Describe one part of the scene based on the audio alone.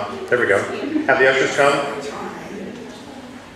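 An elderly man speaks loudly through a microphone in a reverberant room.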